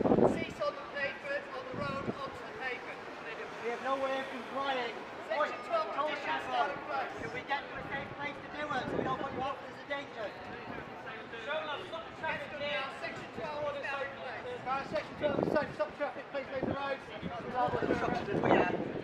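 A crowd of men and women chatter and talk nearby outdoors.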